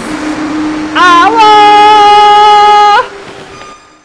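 A young man screams loudly into a close microphone.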